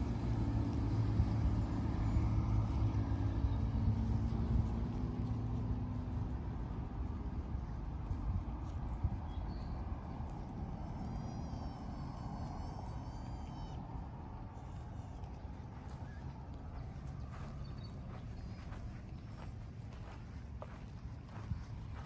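Wind rumbles low outdoors, strongest at first and then easing.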